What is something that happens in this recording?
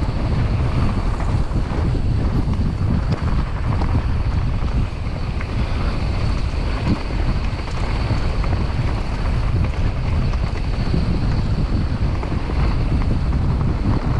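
Bicycle tyres rumble and crunch over a rough dirt track.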